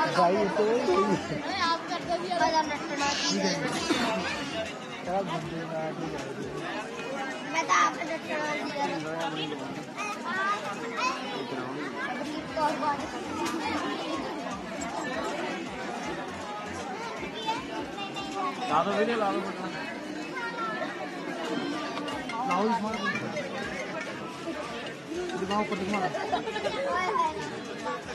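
Several men and women talk and chatter nearby.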